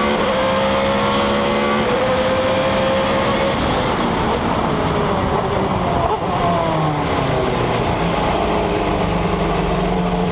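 A racing car engine roars loudly at high revs, shifting pitch as it changes gear.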